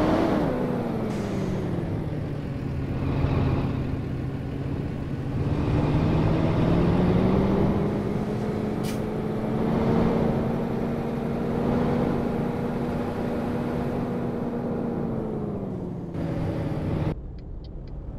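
A bus engine hums loudly from outside, its pitch rising and then falling.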